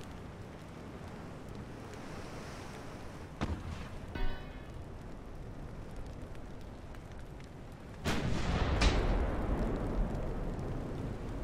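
Waves wash steadily over open sea.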